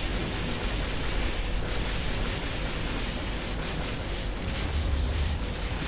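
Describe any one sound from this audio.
Explosions rumble in a space battle.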